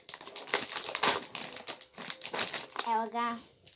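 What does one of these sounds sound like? Paper rustles and crinkles up close.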